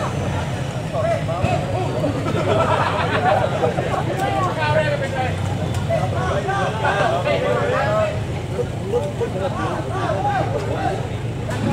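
Several men talk and shout with animation nearby.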